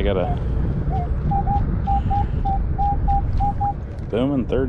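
A metal detector beeps in short repeated tones.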